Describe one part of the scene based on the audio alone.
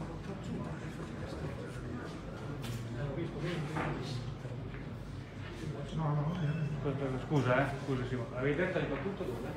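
Adult men talk with each other nearby.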